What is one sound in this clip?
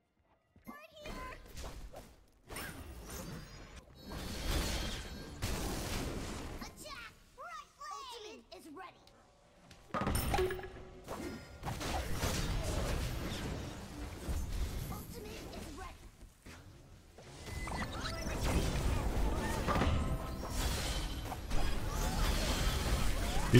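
Loud blasts and crackling magic effects crash repeatedly.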